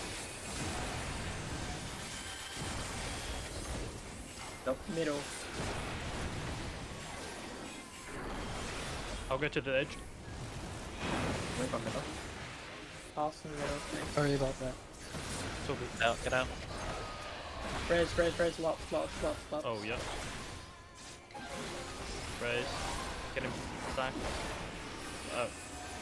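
Magic blasts and explosions boom and crackle in a battle.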